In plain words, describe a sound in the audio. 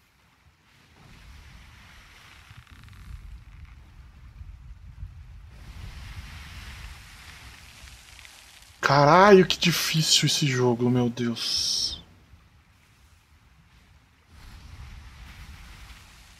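Ocean waves surge and crash.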